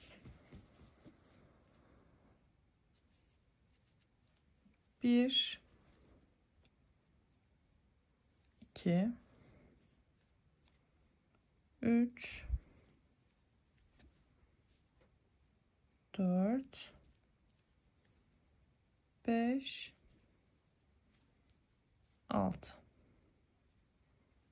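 A crochet hook pulls yarn with a soft, faint rustle.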